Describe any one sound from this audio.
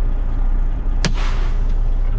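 A switch clicks on a dashboard.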